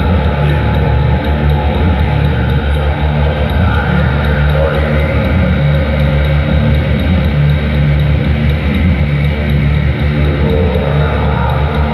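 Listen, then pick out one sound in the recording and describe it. A drum kit pounds a steady beat.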